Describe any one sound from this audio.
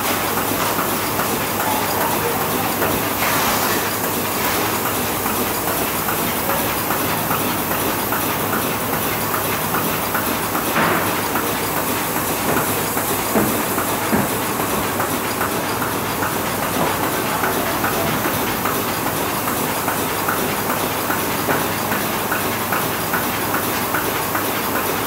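A large machine runs with a loud, steady clatter and rapid rhythmic ticking.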